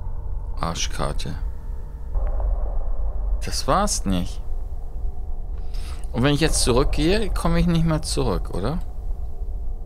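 A young woman talks quietly and reacts with animation close to a microphone.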